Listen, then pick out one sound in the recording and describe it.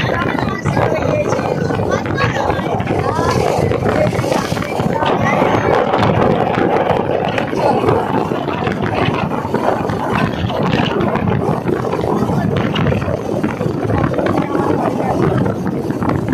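A little girl talks and giggles close by.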